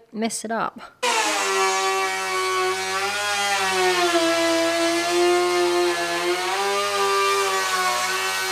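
A power router whines steadily as it cuts through wood.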